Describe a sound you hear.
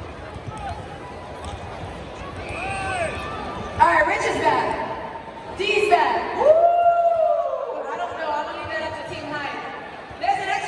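A large crowd chants loudly in unison in a big echoing arena.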